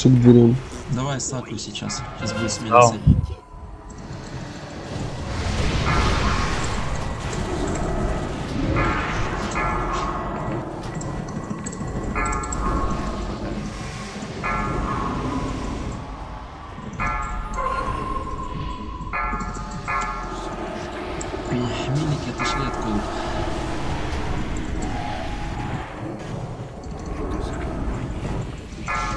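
Magic spells whoosh and crackle in a busy video game battle.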